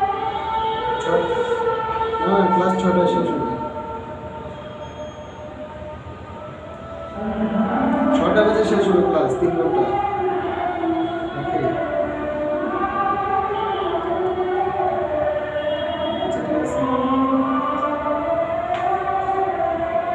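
Music plays from a television's loudspeaker.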